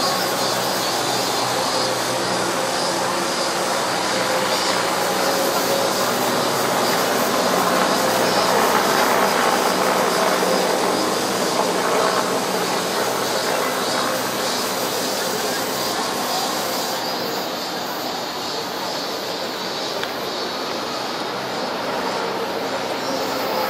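A large outdoor crowd murmurs and cheers steadily, swelling in the middle.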